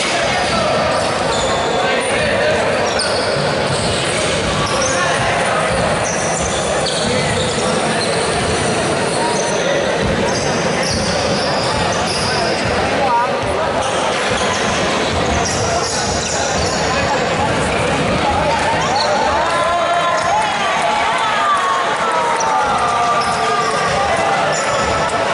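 A crowd of people chatter in an echoing hall.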